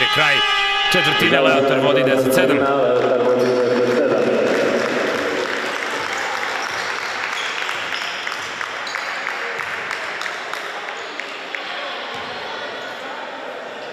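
Spectators and players murmur in an echoing hall.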